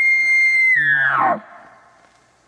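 An elk bugles loudly nearby, a high whistle that slides down.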